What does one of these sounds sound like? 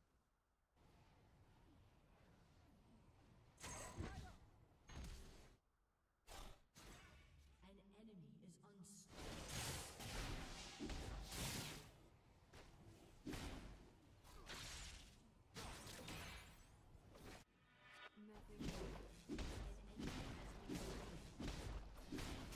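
Video game combat effects crackle, whoosh and burst in quick bursts.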